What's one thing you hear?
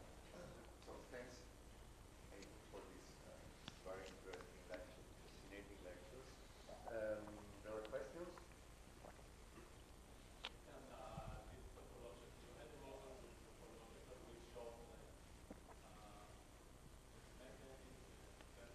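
An elderly man speaks calmly into a handheld microphone.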